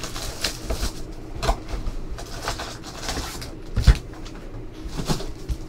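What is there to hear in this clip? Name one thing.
Cardboard packaging rustles and scrapes as a box is opened.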